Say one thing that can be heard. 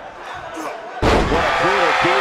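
A body slams heavily onto a ring mat with a loud thud.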